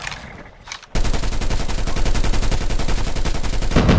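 A heavy gun fires in a rapid, steady burst.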